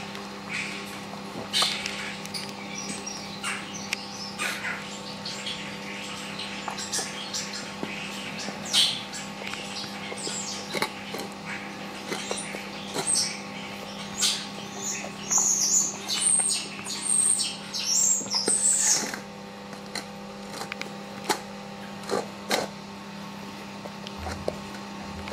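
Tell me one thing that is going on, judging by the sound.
A metal bowl clinks as a bear cub eats from it.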